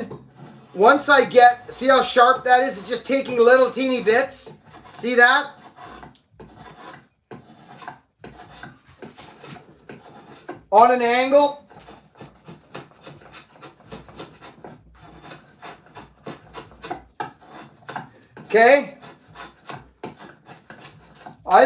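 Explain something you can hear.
A blade scrapes and shaves wood in quick, repeated strokes.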